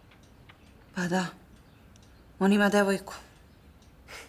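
A young woman answers in a low voice close by.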